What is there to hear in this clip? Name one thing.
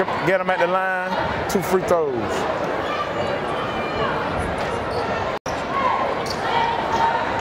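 A crowd murmurs and shouts in a large echoing gym.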